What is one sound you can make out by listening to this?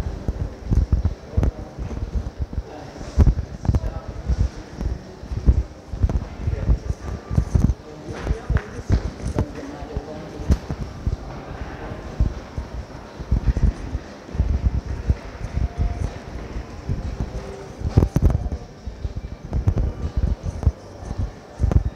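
Footsteps thump close by on a hard floor in a large echoing hall.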